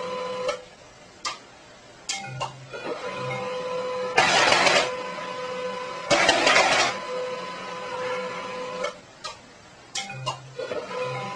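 A cat's paw taps and knocks against a printer.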